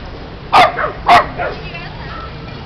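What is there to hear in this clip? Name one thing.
A dog barks sharply a few times close by.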